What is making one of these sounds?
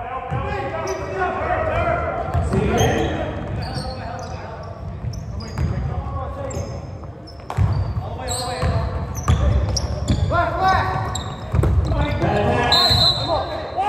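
Sneakers squeak sharply on a hard floor.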